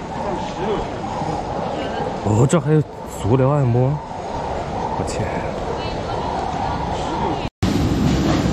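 Footsteps echo through a large hall.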